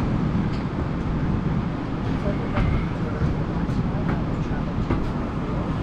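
A van drives past.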